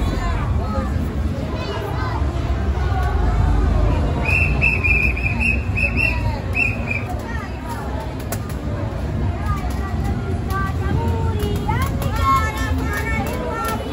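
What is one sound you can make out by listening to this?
A crowd of children and adults chatter outdoors close by.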